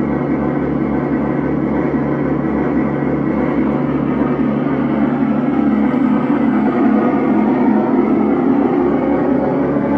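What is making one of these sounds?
Dense electronic synthesizer drones and buzzes through a loudspeaker.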